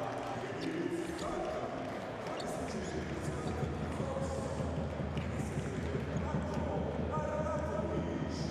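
A crowd murmurs in a large, echoing hall.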